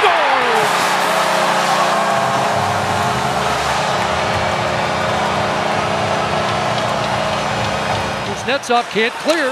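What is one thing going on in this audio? A goal horn blares steadily.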